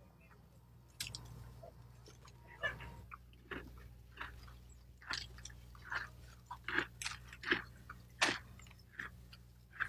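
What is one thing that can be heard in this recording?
Footsteps rustle through leaves and undergrowth.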